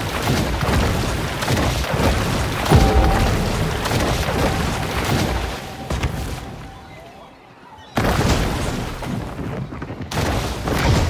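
Water splashes and churns as a large creature swims through it.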